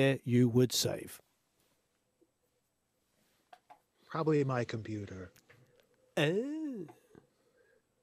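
A man talks calmly over an online call, in short bursts with pauses.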